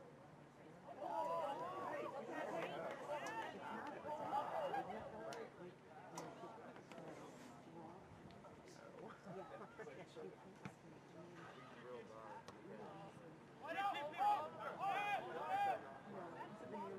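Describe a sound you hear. Spectators close by talk and call out outdoors.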